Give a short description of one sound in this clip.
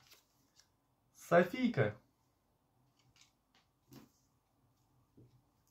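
Paper rustles as a strip is handled.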